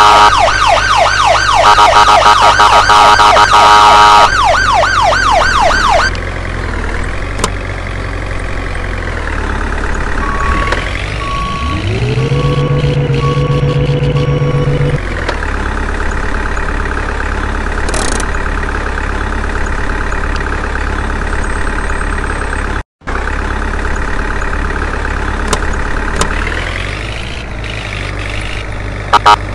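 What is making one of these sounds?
A vehicle engine hums steadily, revving up at times.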